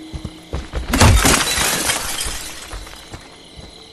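Glass shatters as a window is smashed in.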